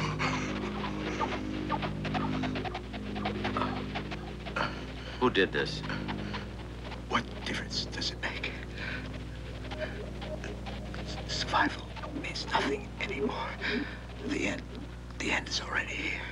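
A man speaks in a low, calm voice, close by.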